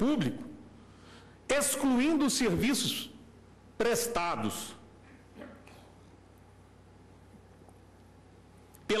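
A man speaks formally into a microphone, in short bursts.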